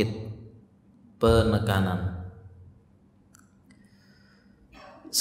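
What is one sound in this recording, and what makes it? A man speaks calmly into a microphone, in a room with a slight echo.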